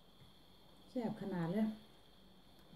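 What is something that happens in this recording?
A woman slurps noodles loudly up close.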